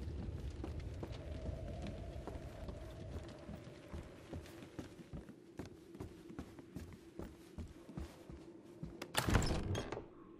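Footsteps creak on wooden floorboards.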